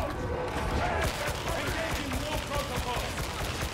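Rapid gunfire rattles with heavy booms.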